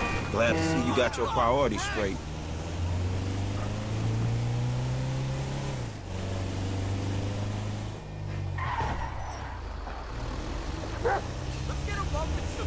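A van engine hums steadily as it drives along a street, rising and falling in pitch as it speeds up and slows.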